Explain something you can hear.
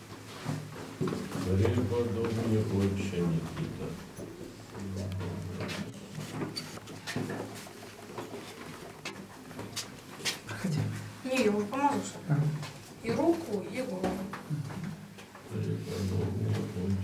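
A man chants a prayer in a deep, steady voice nearby.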